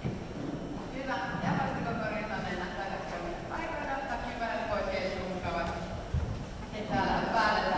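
A man shouts loudly in a large echoing hall.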